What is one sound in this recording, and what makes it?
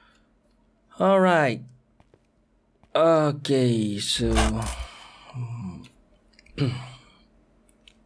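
A young man exclaims with animation, close to a microphone.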